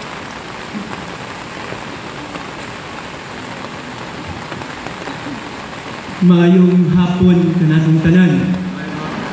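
Rain patters steadily on many umbrellas outdoors.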